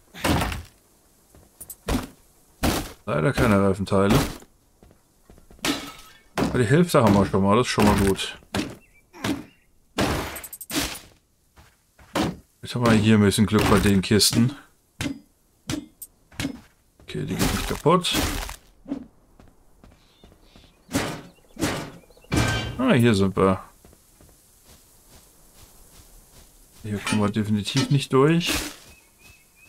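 A young man talks with animation into a close microphone, in bursts with pauses.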